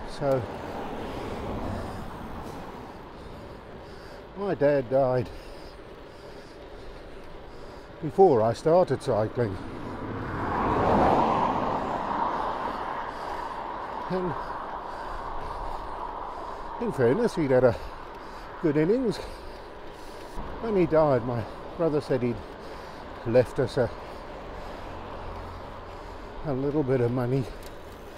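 Bicycle tyres roll and hum on rough asphalt.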